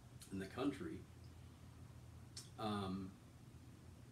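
A man speaks calmly and close by in short phrases.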